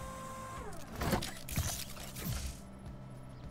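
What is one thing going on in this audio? Heavy metal parts clank and lock into place.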